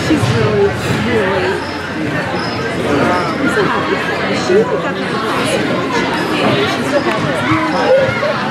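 Hockey sticks clack against a ball on a hard floor.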